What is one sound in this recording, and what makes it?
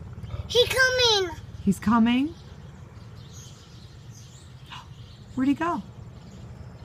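A toddler babbles and squeals up close.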